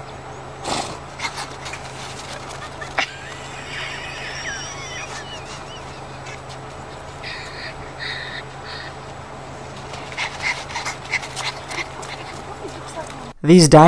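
A young rhino's feet patter on a gravel road.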